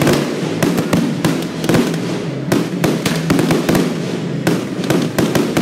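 Firework rockets whistle and whoosh upward.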